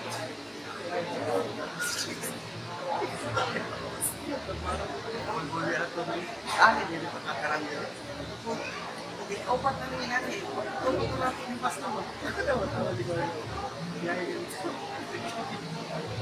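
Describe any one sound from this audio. Many people murmur and talk quietly all around.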